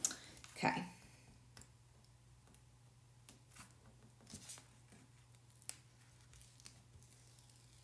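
Paper rustles softly under a hand.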